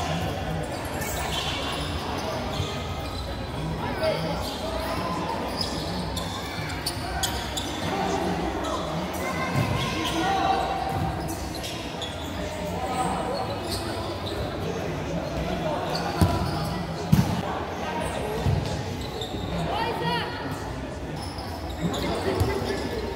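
A crowd of spectators murmurs and calls out in the background.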